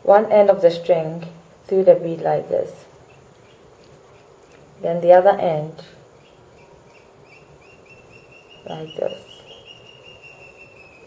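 Small beads click softly as fingers thread them onto a string.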